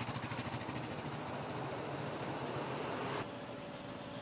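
Heavy trucks rumble past on a road.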